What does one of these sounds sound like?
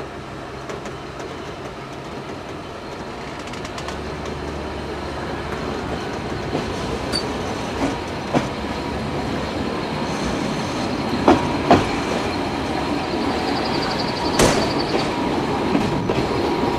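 A train rumbles steadily along the rails, growing louder.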